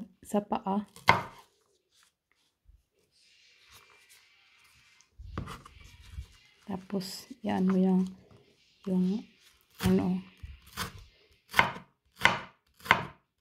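A knife chops an onion on a wooden board with sharp knocks.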